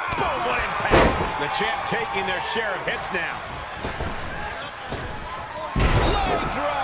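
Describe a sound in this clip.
Bodies slam heavily onto a wrestling ring mat.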